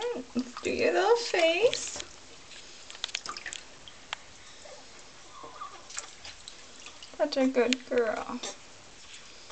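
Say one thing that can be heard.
A woman speaks softly in a high, sing-song voice close by.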